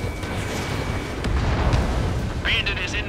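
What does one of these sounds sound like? An explosion booms on the ground.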